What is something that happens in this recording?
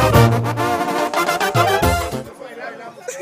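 A brass band plays loudly on stage.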